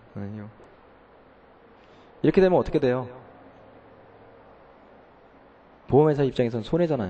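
A man speaks with animation into a handheld microphone, in short bursts with pauses.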